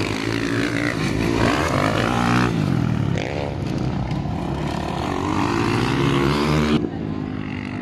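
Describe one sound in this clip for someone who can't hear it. A motorcycle engine revs loudly, rising and falling in pitch.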